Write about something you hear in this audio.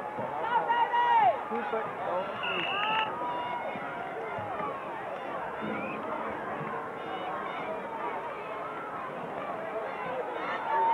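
A crowd cheers and shouts outdoors.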